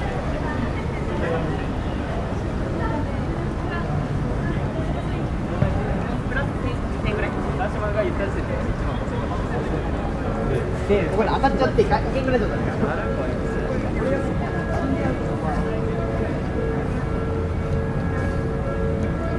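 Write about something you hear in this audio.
Footsteps of many people shuffle on a busy street.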